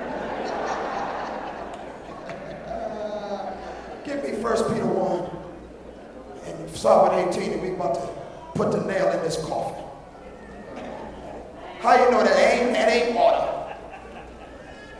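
A man preaches with animation into a microphone, heard over loudspeakers in a large echoing hall.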